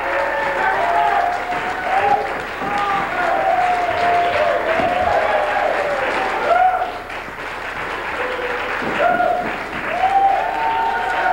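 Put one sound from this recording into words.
A man sings a melody through a microphone.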